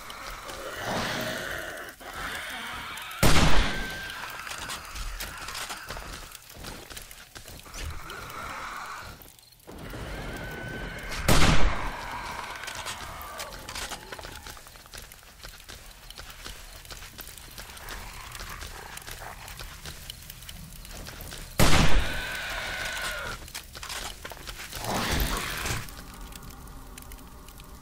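Zombies growl and groan close by.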